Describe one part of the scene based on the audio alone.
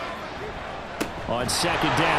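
Football pads crash together in a hard tackle.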